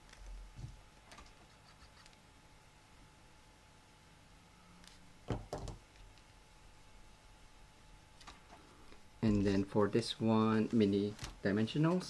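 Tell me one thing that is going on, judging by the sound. Paper rustles and crinkles as it is handled up close.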